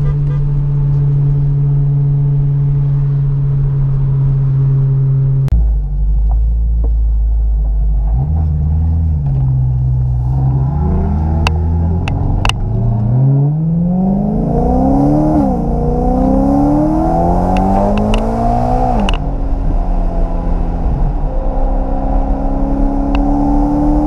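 A car engine hums steadily, then revs up and down through the gears.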